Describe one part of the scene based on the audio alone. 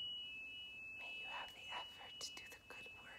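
A young man speaks softly close by.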